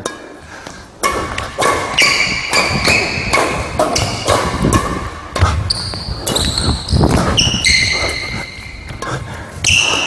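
Badminton rackets hit a shuttlecock back and forth.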